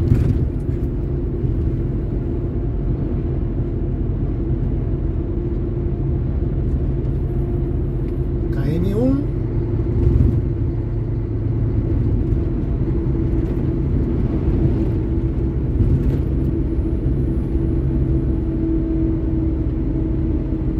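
Tyres roll over smooth asphalt.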